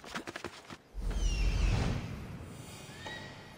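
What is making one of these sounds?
Wind rushes past a flying eagle.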